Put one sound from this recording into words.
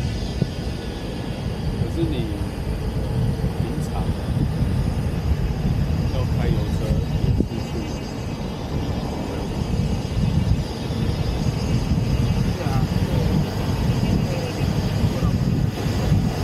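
A car engine hums steadily as it drives along.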